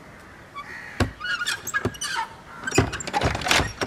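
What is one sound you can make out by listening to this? A wooden door swings shut with a thud.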